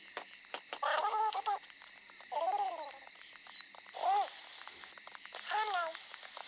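A cartoon creature squeaks in short rising and falling chirps.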